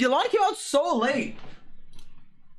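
A young man speaks animatedly and close into a microphone.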